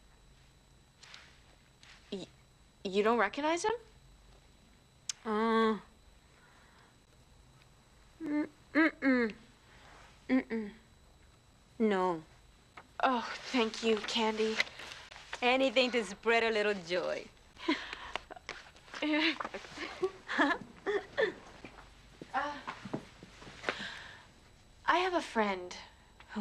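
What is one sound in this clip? A young woman answers in a flat, dry voice, close by.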